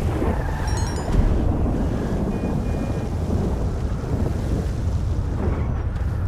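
A car engine rumbles low as the car drives slowly.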